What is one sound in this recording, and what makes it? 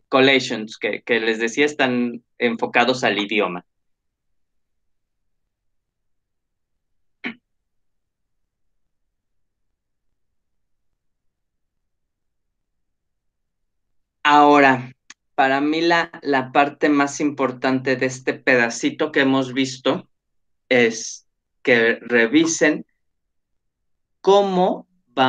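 A man speaks calmly through a microphone on an online call, with pauses.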